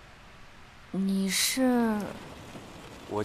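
A young woman speaks with surprise.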